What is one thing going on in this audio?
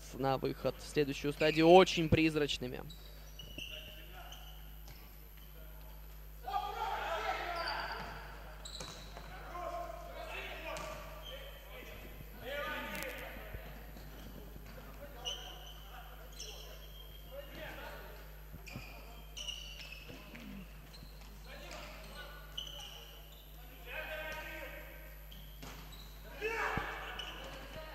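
Sneakers squeak sharply on a hard indoor floor.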